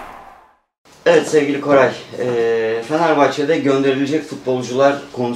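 A middle-aged man talks calmly at close range.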